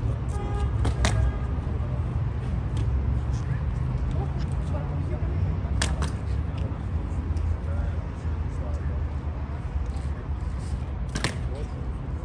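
A guard's hobnailed boots stamp sharply on stone.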